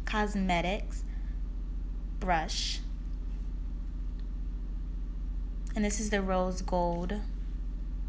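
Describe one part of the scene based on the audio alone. A young woman speaks calmly and close by, in short phrases.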